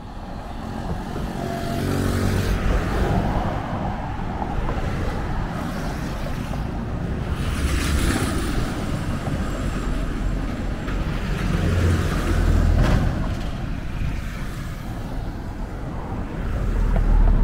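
Cars and vans drive past one after another on a road outdoors.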